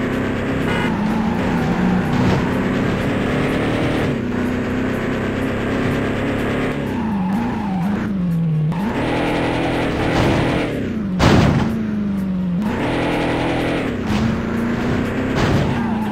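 Tyres screech as a car skids through turns.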